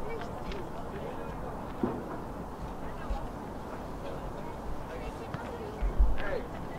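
Young men call out to each other faintly in the distance.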